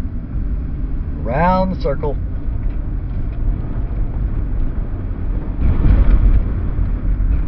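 A car engine hums with a low road rumble while driving.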